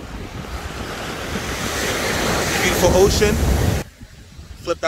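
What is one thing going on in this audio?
Waves crash and wash up on the shore.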